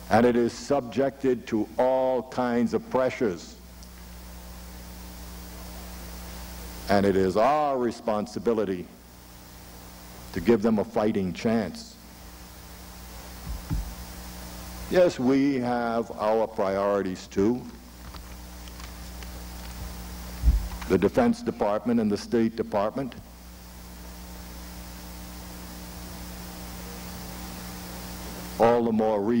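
A middle-aged man speaks firmly into a microphone, in short bursts with pauses.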